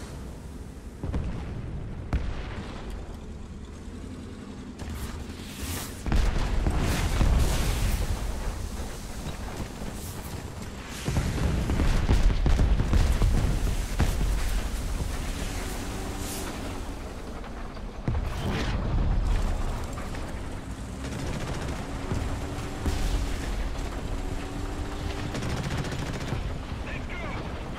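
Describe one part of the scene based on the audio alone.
A tank engine rumbles and revs.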